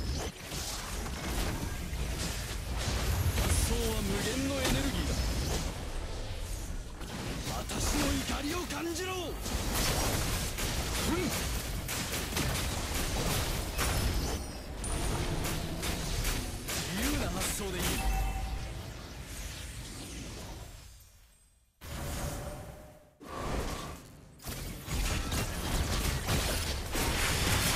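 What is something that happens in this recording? Magic blasts and hits crackle and thud in quick bursts.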